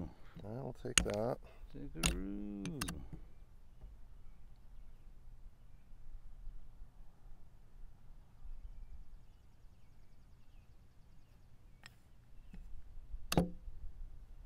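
Chess pieces clack onto a wooden board.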